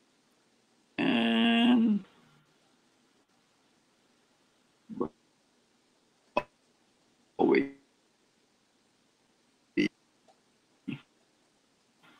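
A second man speaks briefly over an online call.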